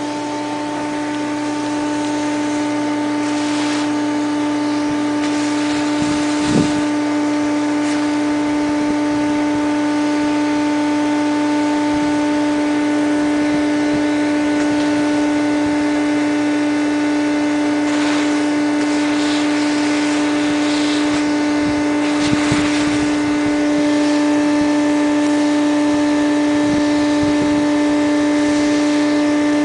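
Air rushes through a vacuum hose.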